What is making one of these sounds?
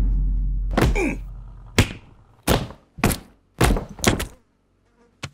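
A head thuds hard against the floor again and again.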